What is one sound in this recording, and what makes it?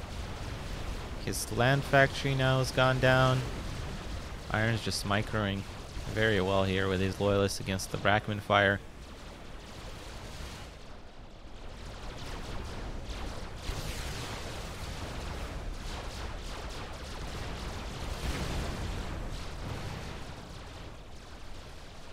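Gunfire and blasts crackle in a distant battle.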